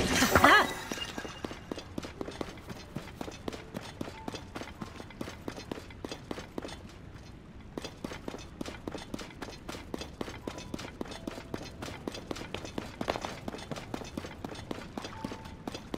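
Quick footsteps run over rough ground.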